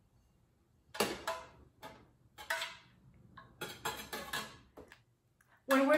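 A metal spoon stirs melted wax in a metal pouring pitcher.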